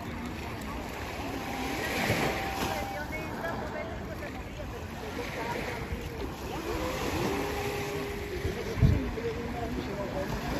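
Women chat nearby outdoors.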